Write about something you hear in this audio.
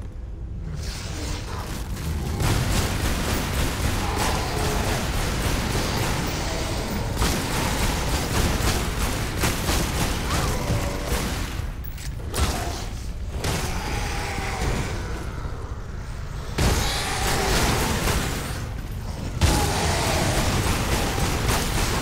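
A waterfall rushes and splashes nearby.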